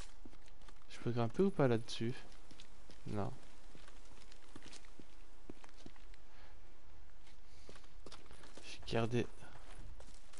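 A young man speaks briefly and casually into a close microphone.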